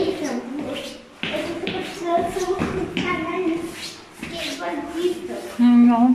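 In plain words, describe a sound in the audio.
Footsteps tap on stone stairs.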